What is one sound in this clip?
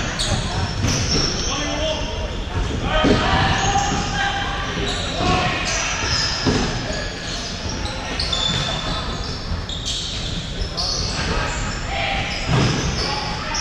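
A ball thumps on the floor.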